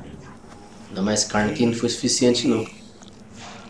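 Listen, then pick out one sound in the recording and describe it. A big cat growls loudly up close.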